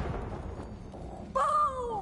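A fiery blast roars close by.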